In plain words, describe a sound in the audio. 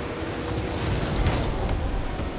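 A ball thuds as a car hits it.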